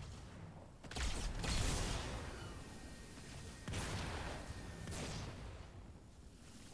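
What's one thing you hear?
A plasma weapon fires with bursts of crackling energy.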